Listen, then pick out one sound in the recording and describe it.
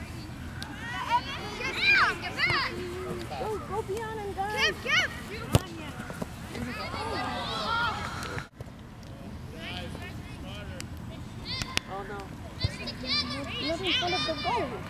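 Children shout loudly outdoors.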